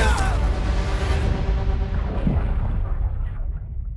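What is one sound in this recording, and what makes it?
A body slams hard onto a wooden floor.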